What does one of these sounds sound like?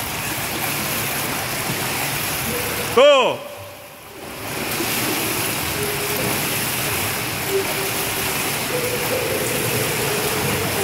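A swimmer splashes and churns through the water in an echoing indoor pool.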